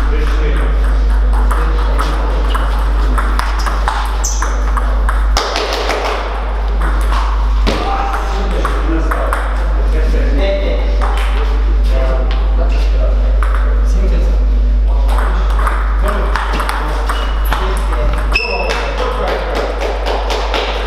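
Table tennis balls click off paddles and the table in quick rallies.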